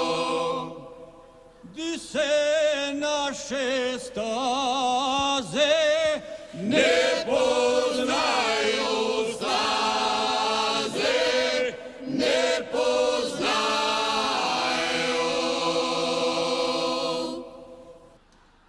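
A woman sings a folk song through a microphone.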